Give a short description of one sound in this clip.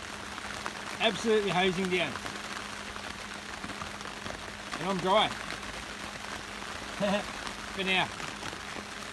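A man speaks close by in short, quiet bursts.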